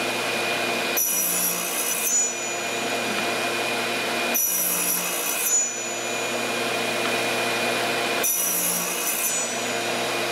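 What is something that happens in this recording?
A saw blade cuts briefly into wood with a high whine, several times.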